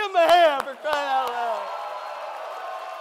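A man laughs and shouts cheerfully into a microphone.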